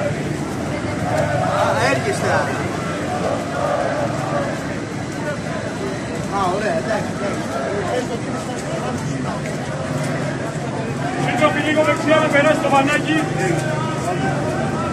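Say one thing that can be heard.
A large crowd outdoors chants and shouts loudly.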